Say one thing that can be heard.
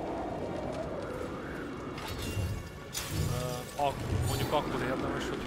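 A magical burst whooshes and thumps.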